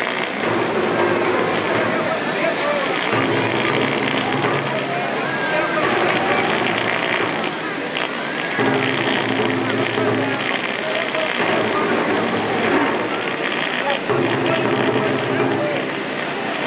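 Music plays loudly over loudspeakers outdoors.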